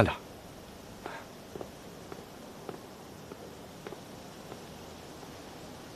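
Footsteps tap on stone steps.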